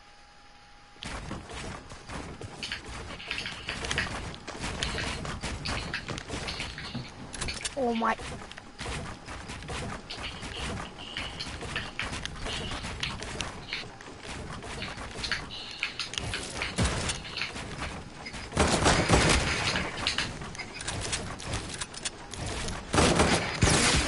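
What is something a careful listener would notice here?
Rapid clattering building and impact sound effects from a video game.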